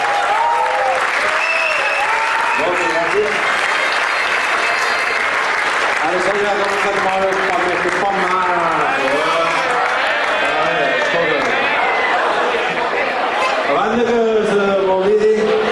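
A crowd cheers and whistles in a large hall.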